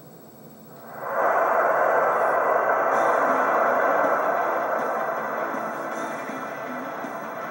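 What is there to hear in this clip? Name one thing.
A crowd roars and cheers loudly through a small television speaker, then slowly fades.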